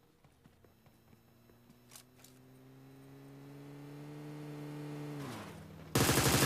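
A motorbike engine hums and rises in pitch.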